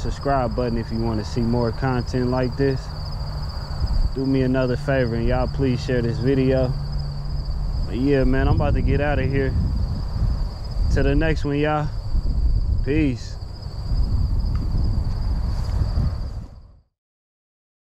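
Wind blusters outdoors.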